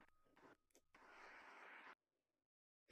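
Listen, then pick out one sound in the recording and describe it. A body whooshes down a smooth plastic slide.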